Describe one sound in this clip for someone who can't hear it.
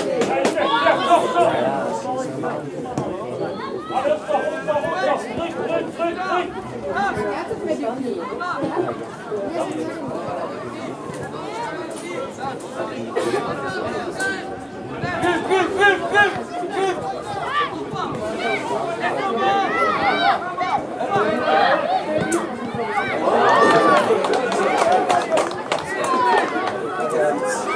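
Young girls shout and call to each other across an open field.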